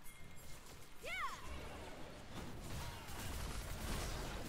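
Video game combat effects whoosh and clash.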